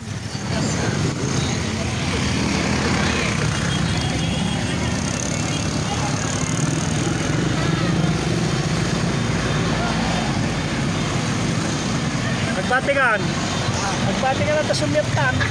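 Motorbike engines buzz as they pass close by.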